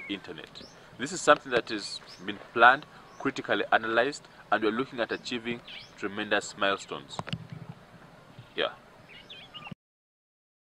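A man speaks calmly and clearly, close to a microphone, outdoors.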